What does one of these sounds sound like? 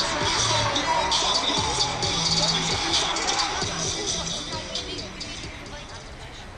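A crowd of spectators cheers loudly outdoors, then quiets down.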